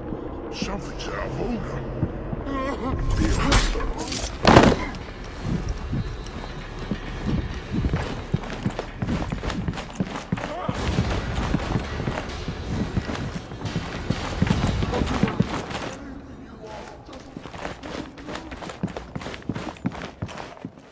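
Footsteps tread quickly across a wooden floor.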